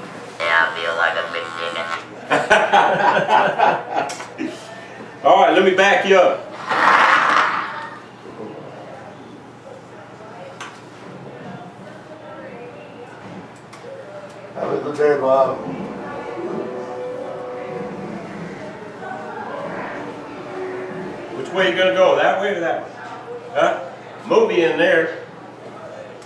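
An elderly man speaks close by, near a microphone.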